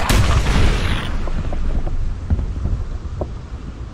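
A creature's body bursts with a wet splatter.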